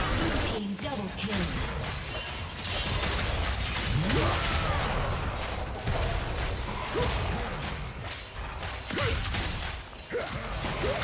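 Fast game sound effects of spells and strikes clash and burst.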